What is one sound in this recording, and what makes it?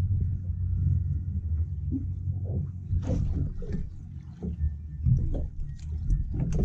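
Wind rumbles steadily outdoors on open water.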